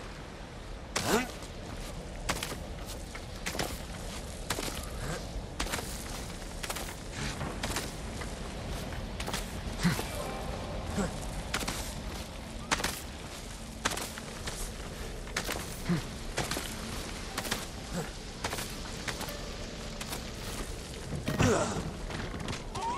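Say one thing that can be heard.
Hands and feet scrape and knock on rock as someone climbs.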